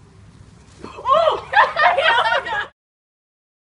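Young women shout and laugh.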